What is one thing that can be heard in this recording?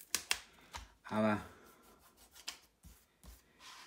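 Paper rustles and crinkles as a sticker is peeled and pressed down.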